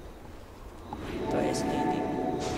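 Magic spells whoosh and chime in a fight.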